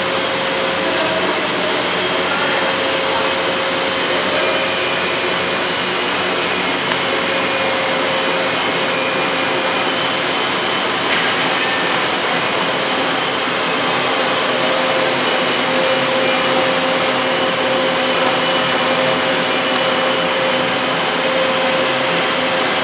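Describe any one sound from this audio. Coolant sprays and hisses onto a spinning metal part.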